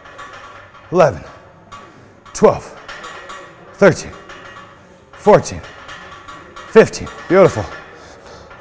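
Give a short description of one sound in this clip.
A man grunts with effort with each pull-up.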